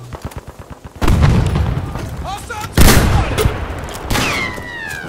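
Loud explosions boom close by.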